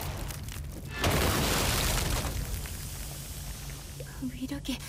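A fiery explosion bursts with a deep roar.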